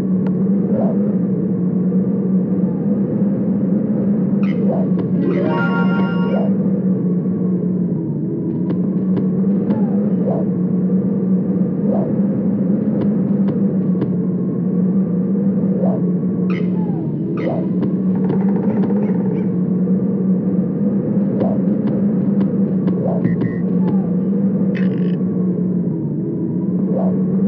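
Light footsteps tap on stone.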